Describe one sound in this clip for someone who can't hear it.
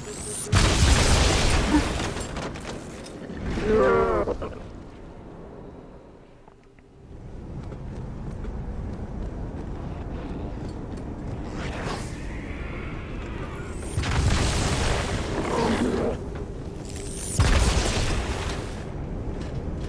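An energy weapon fires with a loud whooshing blast.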